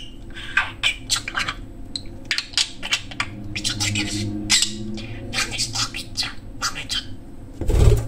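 A budgerigar chirps and chatters.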